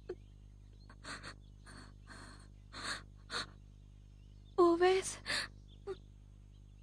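A young woman speaks anxiously.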